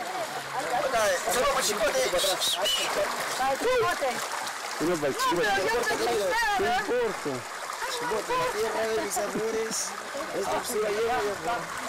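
Water splashes as people move around in a pool.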